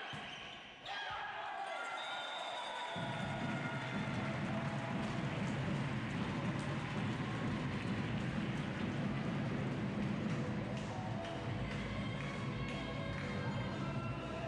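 A crowd in a large hall cheers and claps loudly.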